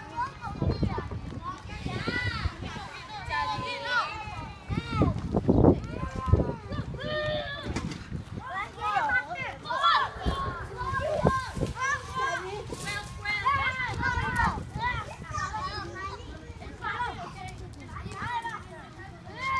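Young boys shout and call out to each other outdoors, close by.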